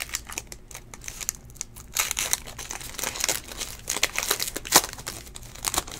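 A foil pack tears open.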